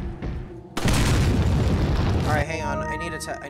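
A gun fires loudly.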